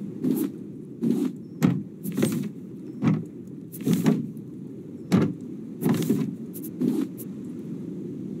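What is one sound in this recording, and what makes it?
A soft click sounds as a menu opens and closes.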